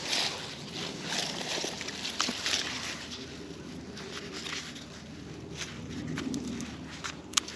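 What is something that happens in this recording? Leaves and stems rustle as gloved hands push through tomato plants.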